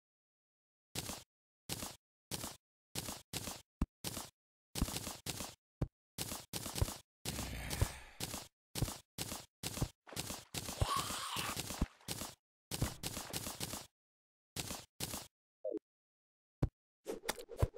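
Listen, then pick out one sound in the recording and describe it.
Short game clicks sound as items are moved around.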